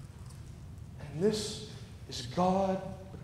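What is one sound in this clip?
A man preaches with emphasis through a microphone in a large echoing hall.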